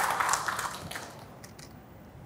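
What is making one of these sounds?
An audience claps and cheers.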